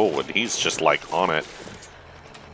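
A man speaks animatedly into a close microphone.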